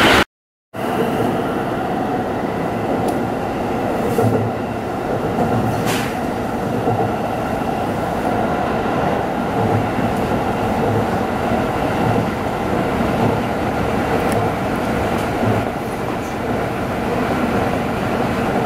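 A train's wheels clack rhythmically over rail joints.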